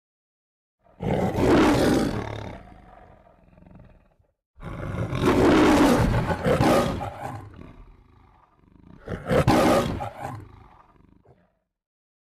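A lion roars loudly several times.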